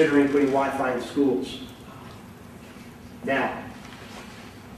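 A middle-aged man speaks calmly and close by, in short phrases.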